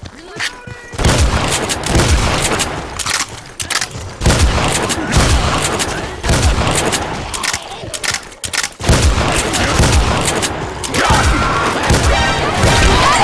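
A shotgun fires again and again with loud, booming blasts.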